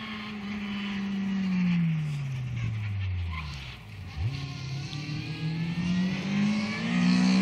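A rally hatchback engine note drops as the car slows, then climbs again as it accelerates away.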